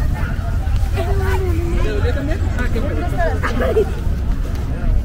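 A young woman speaks close by, calmly.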